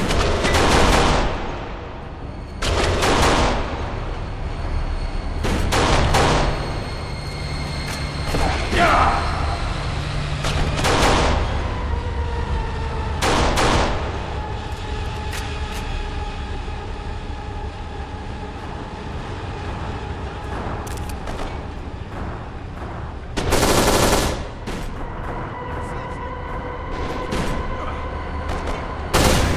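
Gunshots fire in loud bursts, with echoing blasts.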